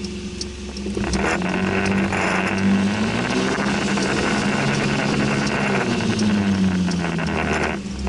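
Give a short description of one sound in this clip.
Tyres hiss on a wet road as a car drives off.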